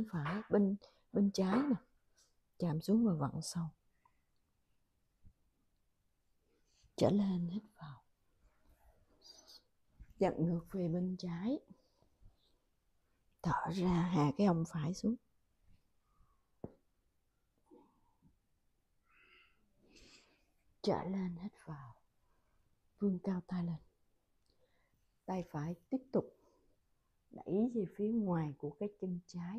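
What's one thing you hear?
A woman speaks calmly and clearly, giving instructions in short phrases.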